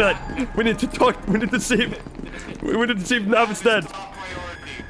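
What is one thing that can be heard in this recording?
A man speaks over a radio with a crackly, processed voice.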